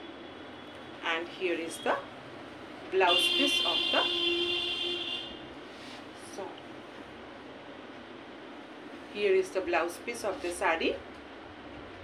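A middle-aged woman speaks calmly and close to a microphone, in short bursts.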